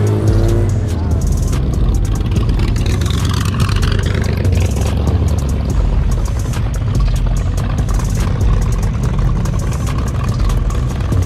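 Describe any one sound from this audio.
A car engine rumbles loudly close by.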